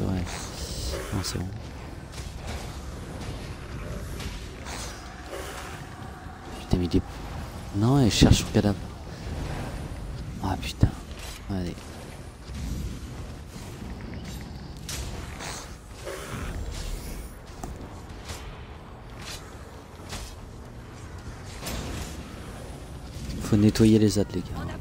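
Spells and weapons clash with bursts of magic.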